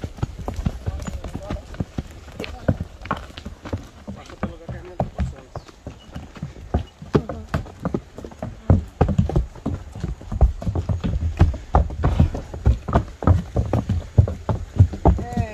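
A horse's hooves clop steadily on a dirt track.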